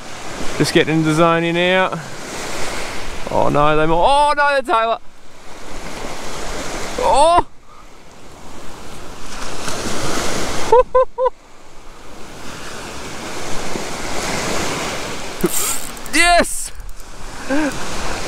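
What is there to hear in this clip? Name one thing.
Small waves lap and wash gently over the shallow shore.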